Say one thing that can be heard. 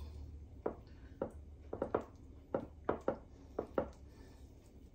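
A spoon scrapes and taps against a glass dish.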